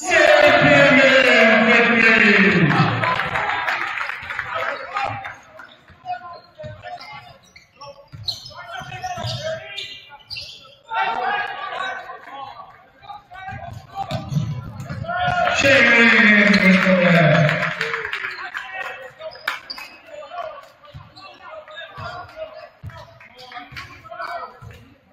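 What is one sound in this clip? A basketball bounces on a hard court, echoing in a large hall.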